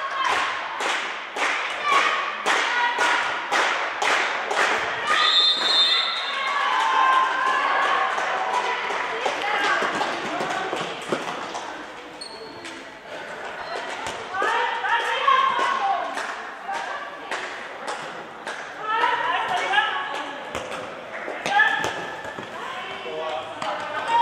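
Players shout to each other in a large echoing hall.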